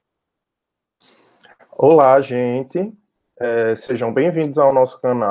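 A young man speaks calmly into a microphone, heard through an online call.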